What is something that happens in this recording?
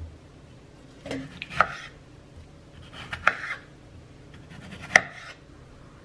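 A knife slices through tomatoes onto a wooden board.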